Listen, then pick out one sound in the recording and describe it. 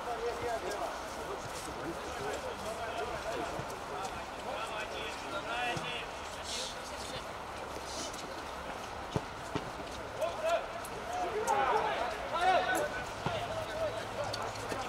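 Men call out to each other outdoors.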